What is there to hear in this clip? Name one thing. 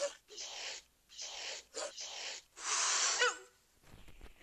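A cat hisses and snarls in short bursts.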